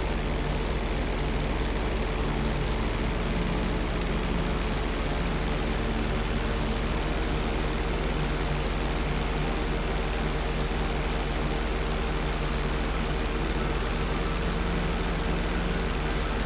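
A propeller plane's engine drones steadily throughout.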